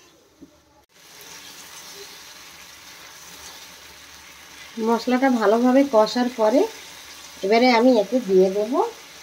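Sauce sizzles and bubbles softly in a pan.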